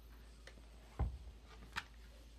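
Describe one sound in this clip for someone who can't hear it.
A board book's page is turned and lands with a soft thump.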